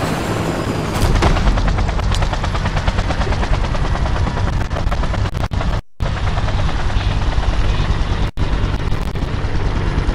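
A large aircraft engine rumbles deeply.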